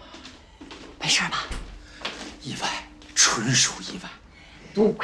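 A man speaks loudly and with agitation.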